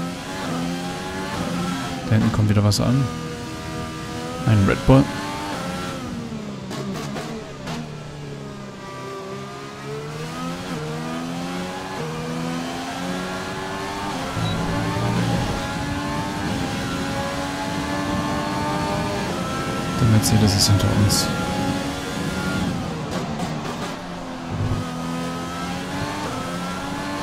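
A racing car engine screams at high revs, rising and dropping in pitch as it shifts gears.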